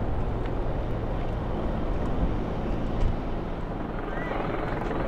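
Traffic rumbles along a city street outdoors.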